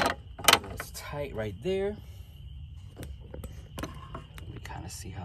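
An engine ticks and clicks rapidly while idling.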